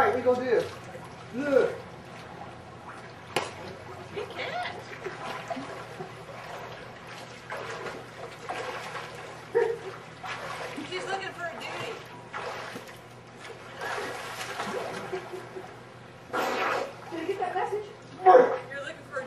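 A child shouts outdoors.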